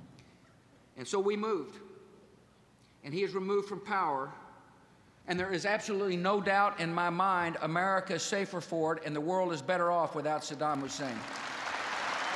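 A middle-aged man speaks forcefully into a microphone in a large hall.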